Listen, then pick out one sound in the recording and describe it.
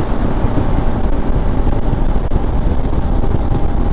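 Another motorcycle passes close by.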